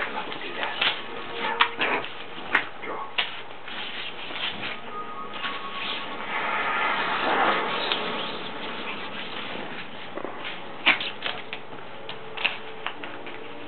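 A small dog scrambles and scuffles playfully on a soft bedcover.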